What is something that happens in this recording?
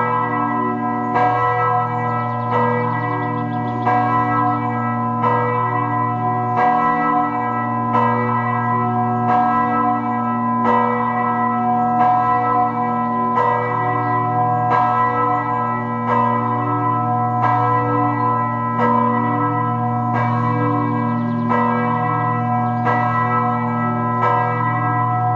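Church bells ring out loudly in a steady, repeating peal with long humming tones.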